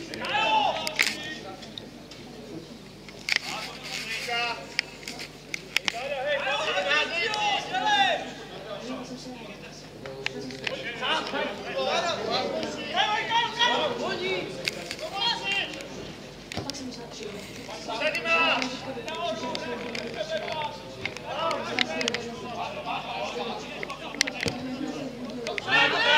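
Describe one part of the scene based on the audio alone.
Football players shout to each other in the distance outdoors.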